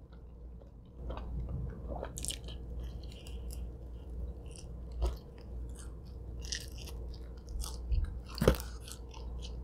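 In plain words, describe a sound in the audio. Pizza crust crunches and rustles as a young woman pulls at it.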